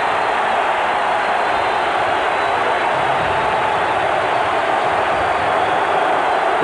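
A large crowd murmurs steadily in a wide, open space.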